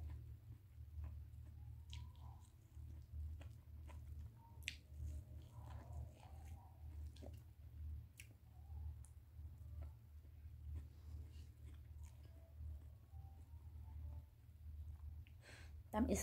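A woman chews food with soft, wet smacking sounds close by.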